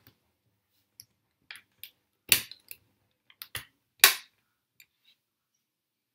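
Hands knock and click against a hard suitcase shell.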